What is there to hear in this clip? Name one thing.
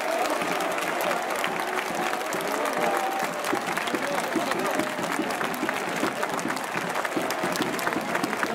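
Spectators clap in a steady rhythm.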